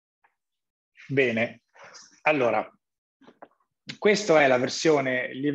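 A man speaks calmly through a microphone, in short phrases.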